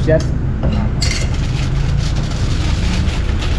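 Foil crinkles as meat is handled.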